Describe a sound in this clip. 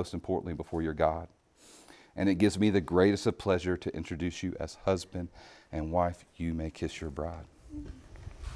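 A man speaks calmly and clearly, as if leading a ceremony.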